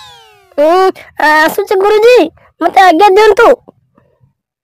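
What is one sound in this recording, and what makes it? A boy speaks with animation.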